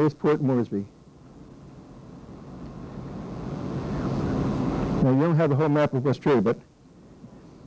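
An elderly man speaks steadily to a room, heard from a distance.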